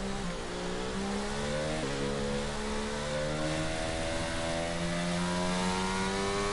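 A racing car engine whines, climbing in pitch.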